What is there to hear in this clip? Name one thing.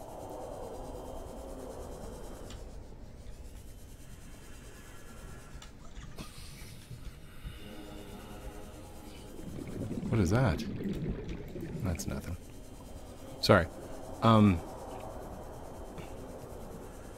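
A low underwater drone hums steadily.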